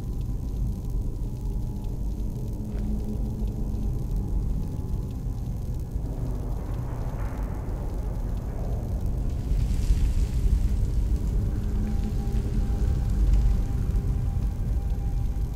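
A low magical drone hums steadily.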